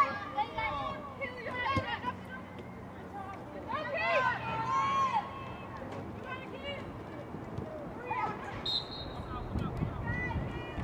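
Spectators and players shout and cheer across an outdoor field.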